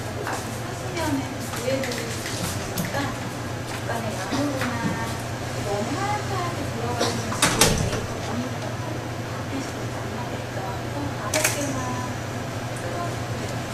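A woman speaks calmly into a headset microphone.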